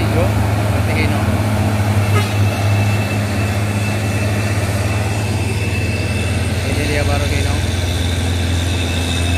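A heavy truck engine rumbles loudly as the truck drives past on the road.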